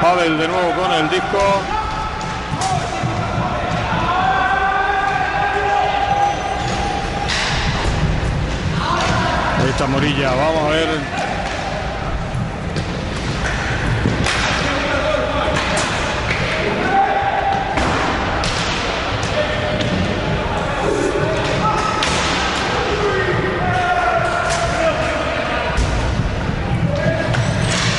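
Roller skate wheels rumble across a hard floor.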